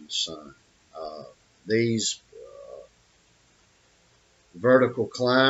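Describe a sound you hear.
An elderly man speaks calmly and haltingly into a nearby microphone.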